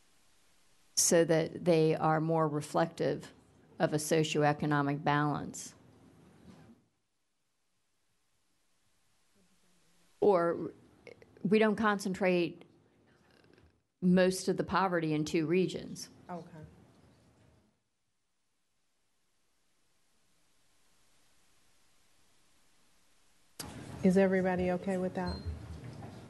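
A middle-aged woman speaks calmly into a microphone, in pauses.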